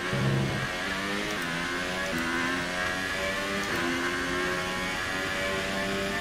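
A racing car engine screams at high revs, its pitch climbing and dropping with each gear change.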